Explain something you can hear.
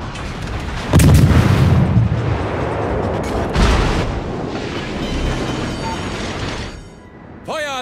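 Heavy guns fire in loud booming blasts.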